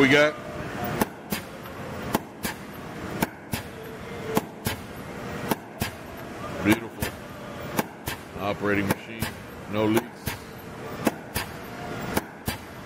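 A power press thumps repeatedly with sharp metallic strokes.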